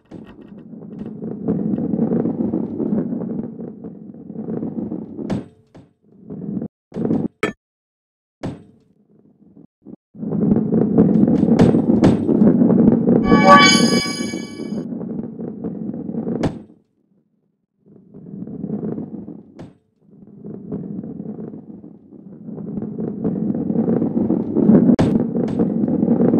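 A heavy ball rolls and rumbles along a wooden track.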